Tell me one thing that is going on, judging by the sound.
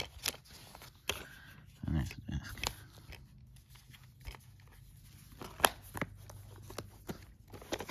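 Plastic cases click and tap as they are handled.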